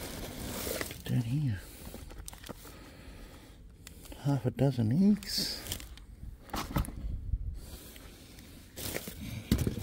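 Plastic bags rustle and crinkle close by.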